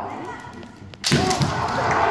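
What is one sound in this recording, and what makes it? A bamboo sword strikes with a sharp crack.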